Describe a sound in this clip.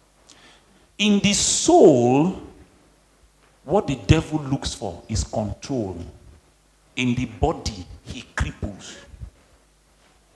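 An elderly man speaks with animation through a headset microphone.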